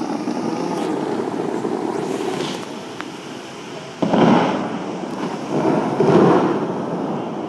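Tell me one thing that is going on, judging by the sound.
Fountain jets of water rush and splash outdoors, surging in bursts.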